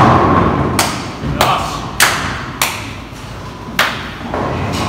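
Sharp claps ring out in an echoing hall.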